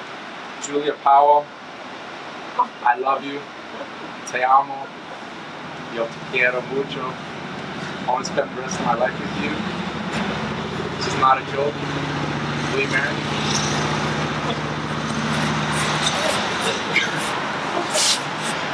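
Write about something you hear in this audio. A young man speaks softly and warmly close by.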